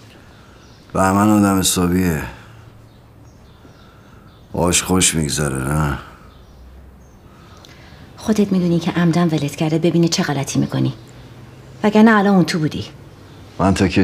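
A woman speaks nearby in a tense voice.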